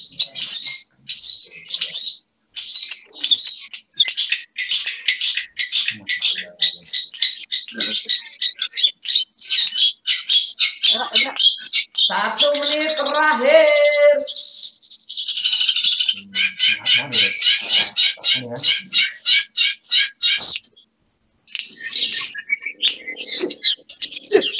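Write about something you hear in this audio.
Caged songbirds sing loud, rapid chirping trills.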